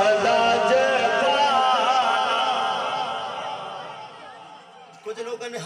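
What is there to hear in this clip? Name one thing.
A young man chants loudly through a microphone and loudspeakers, with echo.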